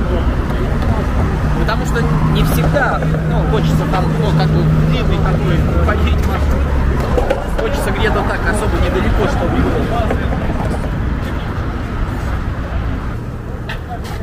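Inline skate wheels roll on pavement.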